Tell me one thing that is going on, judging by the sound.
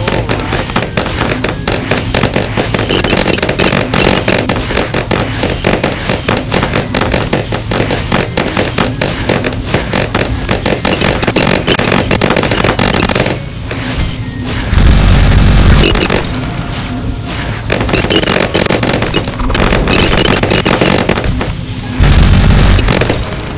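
Rapid cartoon popping and zapping effects go on.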